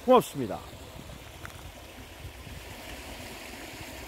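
A shallow stream trickles over stones.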